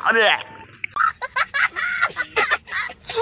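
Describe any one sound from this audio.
A young boy laughs loudly.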